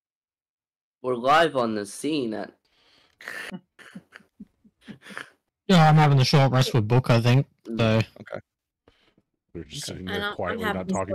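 A man talks casually over an online call, close to the microphone.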